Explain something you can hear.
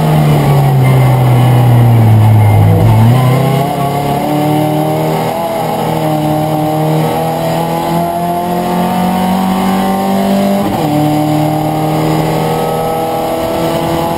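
A race car engine roars loudly from inside the cabin, its pitch rising and falling through gear changes.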